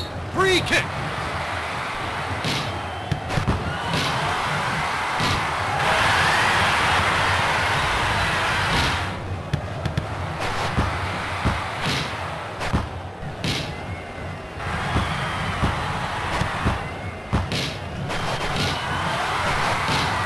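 A stadium crowd roars and cheers steadily.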